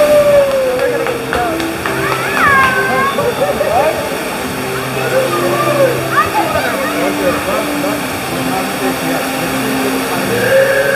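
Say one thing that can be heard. Burning gas hisses and roars steadily from a vent outdoors.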